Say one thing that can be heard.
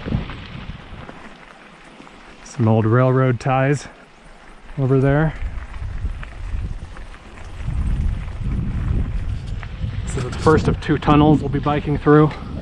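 Bicycle tyres roll and crunch over a dirt and gravel trail.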